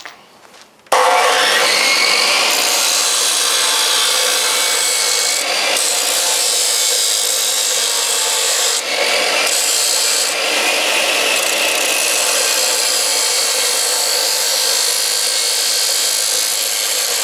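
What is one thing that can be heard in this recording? A metal cutoff saw screeches loudly as its blade grinds through metal.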